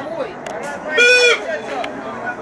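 A referee's whistle blows a sharp, short blast.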